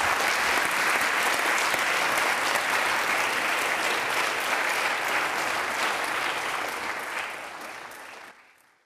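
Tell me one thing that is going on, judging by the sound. An audience applauds in a room, then the clapping fades away.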